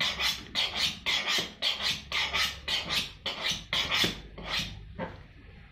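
A knife blade scrapes quickly back and forth along a sharpening steel.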